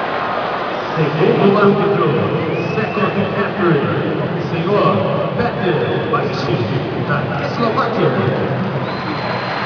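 A man speaks over loudspeakers, echoing around the hall.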